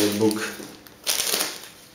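Foam packing squeaks against a box.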